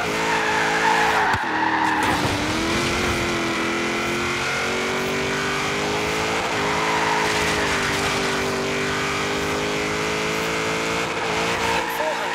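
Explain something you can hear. A car engine roars at high revs, briefly dropping as gears shift.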